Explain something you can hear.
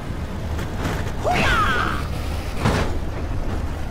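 A truck rumbles and thuds over a row of speed bumps.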